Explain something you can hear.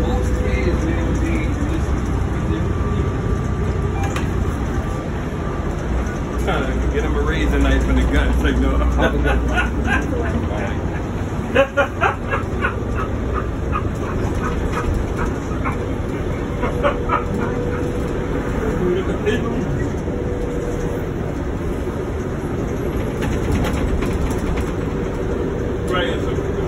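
The inside of a moving bus rattles and clanks over the road.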